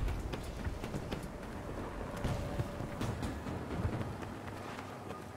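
Distant explosions rumble.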